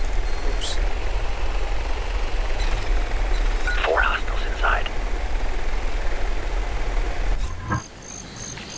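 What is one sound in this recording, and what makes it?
A small drone's rotors hum steadily.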